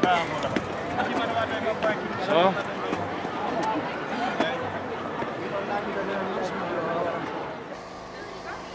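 A young woman talks and laughs, close by.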